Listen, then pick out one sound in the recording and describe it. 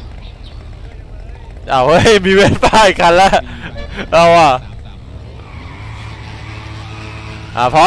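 A motorbike engine idles nearby.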